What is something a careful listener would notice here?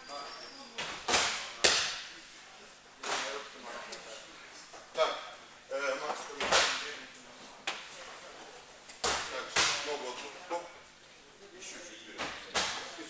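Bodies thud onto padded mats in a large echoing hall.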